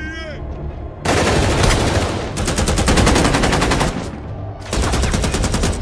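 Automatic rifles fire in rapid, loud bursts.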